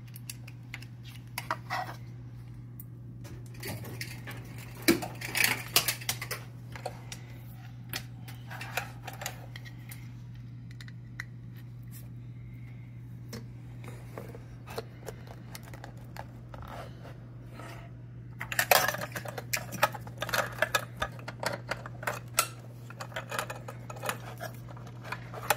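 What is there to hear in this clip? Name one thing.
Plastic connectors click and rattle as hands handle them.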